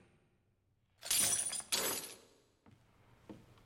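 A metal chain rattles and clatters as it falls away.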